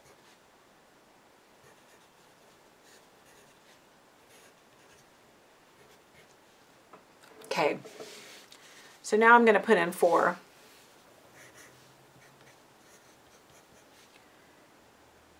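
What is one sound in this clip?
A pencil scratches softly on paper.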